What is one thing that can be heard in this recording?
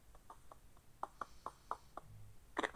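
A marker scratches and taps on a board.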